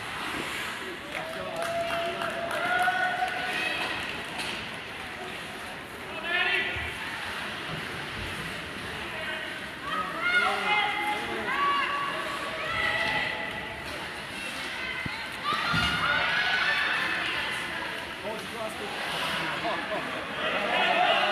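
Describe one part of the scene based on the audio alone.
Spectators shout and cheer in a large echoing arena.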